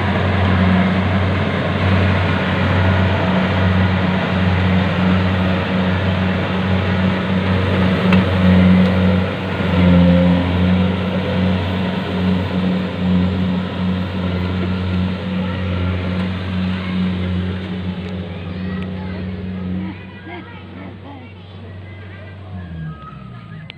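A harvester engine drones loudly nearby and slowly fades as it moves away.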